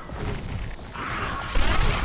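A giant insect buzzes loudly.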